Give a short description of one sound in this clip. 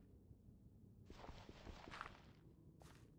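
A pickaxe digs into gravel.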